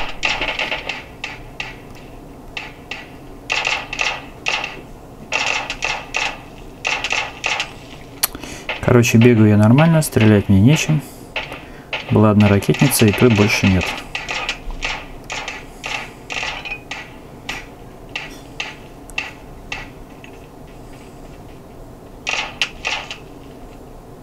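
Gunshots from a game pop in quick bursts through a small phone speaker.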